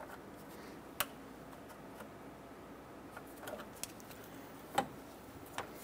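Pliers click sharply as they squeeze a metal hose clamp.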